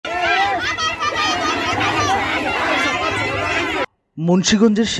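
A young woman shouts slogans loudly, close by.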